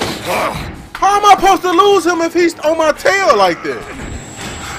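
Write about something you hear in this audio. A young man shouts loudly into a microphone in alarm.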